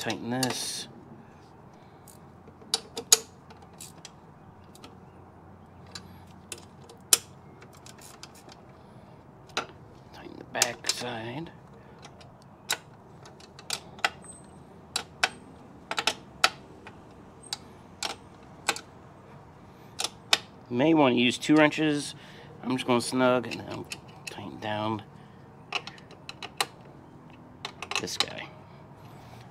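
A ratchet wrench clicks in short bursts.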